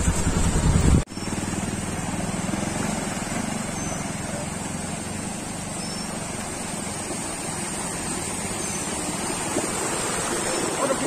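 A motorcycle engine rumbles and moves off.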